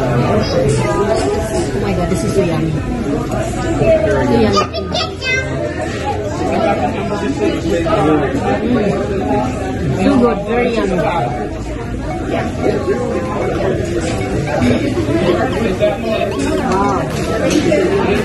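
A busy room full of people chatting fills the background.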